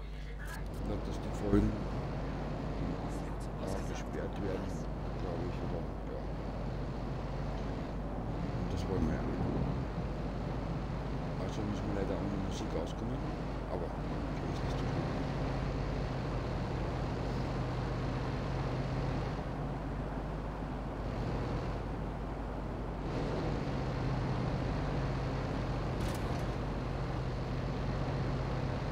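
A truck engine hums steadily as it drives along a street.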